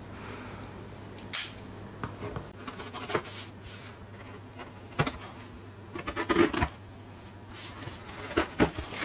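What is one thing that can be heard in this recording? Cardboard scrapes and taps as a parcel is handled.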